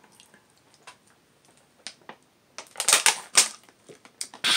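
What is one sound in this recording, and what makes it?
A plastic bottle crinkles.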